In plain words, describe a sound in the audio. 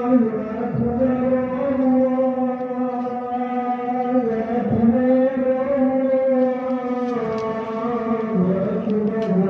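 A man chants a prayer aloud in a long, drawn-out voice.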